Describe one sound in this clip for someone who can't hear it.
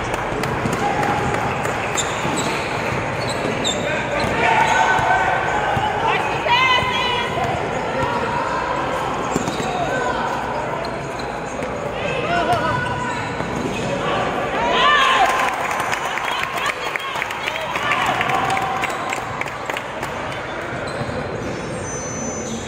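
Young men shout and call out to each other across the gym.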